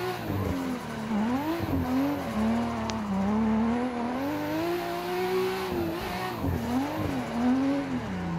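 A racing car engine revs up and down as it shifts gears.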